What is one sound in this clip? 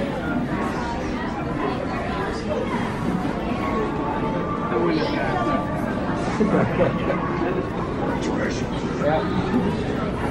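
A crowd of men and women chatter all around in a room.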